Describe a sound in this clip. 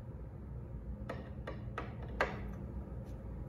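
A screwdriver clicks and scrapes against a metal hood latch.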